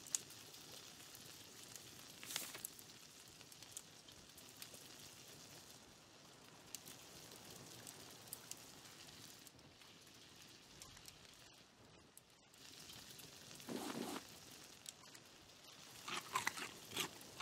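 Food sizzles on a grill.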